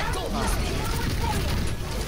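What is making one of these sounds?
A loud blast bursts.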